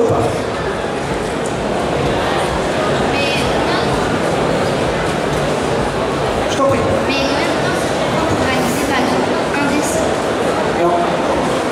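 A man speaks into a microphone through loudspeakers.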